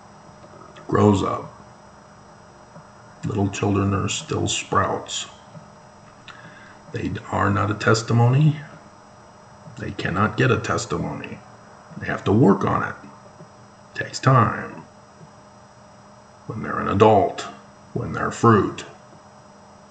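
A middle-aged man speaks calmly and close to the microphone in short bursts with pauses.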